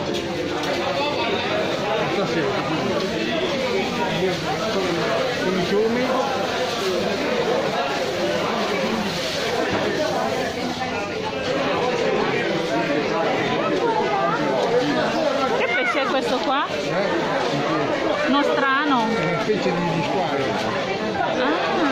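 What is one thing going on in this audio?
A crowd of people chatter all around indoors.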